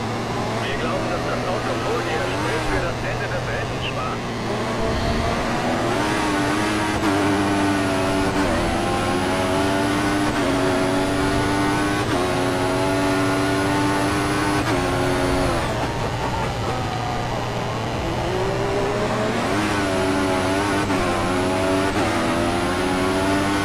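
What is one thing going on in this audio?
A racing car engine screams as it revs up through the gears, its pitch climbing and dropping sharply at each shift.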